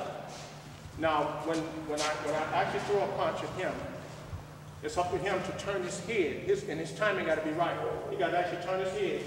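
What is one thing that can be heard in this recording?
A man speaks firmly and with animation, close by.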